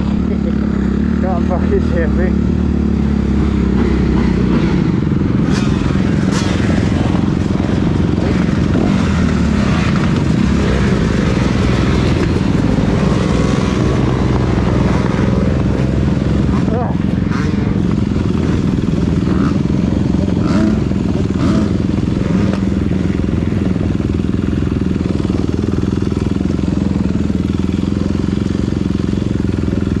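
A dirt bike engine rumbles and revs close by.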